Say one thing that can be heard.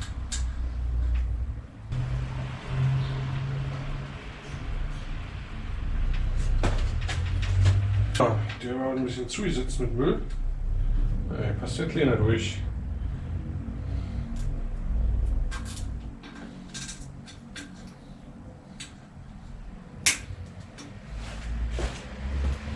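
Metal parts of a bicycle click and clink close by.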